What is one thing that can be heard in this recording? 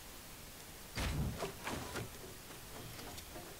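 Wooden building pieces clatter and knock into place.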